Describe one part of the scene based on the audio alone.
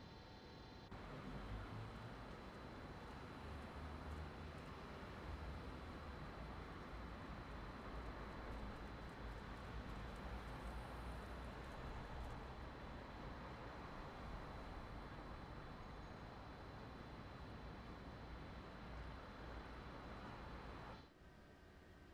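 A standing train's engine hums and rumbles steadily.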